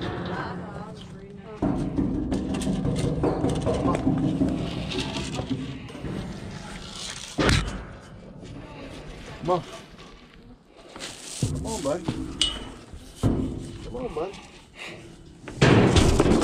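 A heavy metal gate clanks and rattles.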